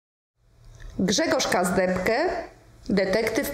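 A middle-aged woman reads aloud calmly and clearly into a close microphone.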